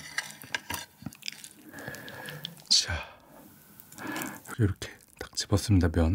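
A metal fork clinks against a plate.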